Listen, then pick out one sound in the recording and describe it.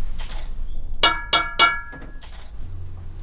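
A metal pot lid scrapes and clanks.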